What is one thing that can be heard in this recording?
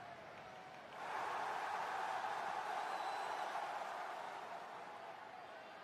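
A crowd roars in a large arena.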